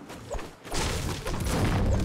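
A pickaxe knocks repeatedly against a wooden roof.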